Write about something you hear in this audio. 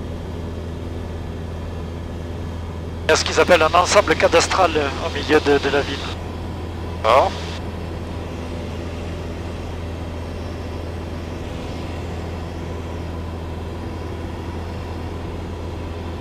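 An aircraft engine drones steadily inside a small cabin.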